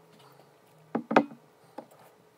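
A glass bottle is set down on a hard surface.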